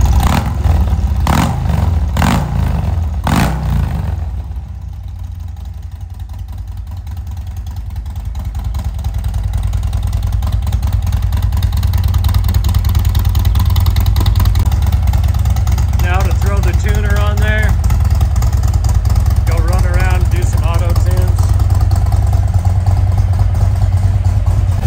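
A motorcycle engine idles with a deep, steady rumble.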